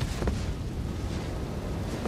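Heavy armoured footsteps crunch on rocky ground.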